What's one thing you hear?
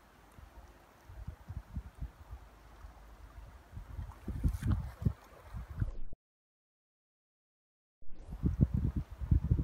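Wind blusters in gusts outdoors.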